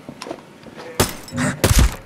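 A rifle fires a few shots.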